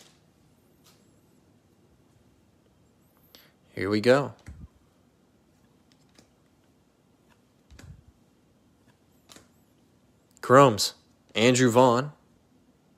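Trading cards rustle and slide softly against each other.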